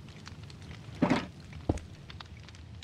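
A block thuds into place with a short crunch.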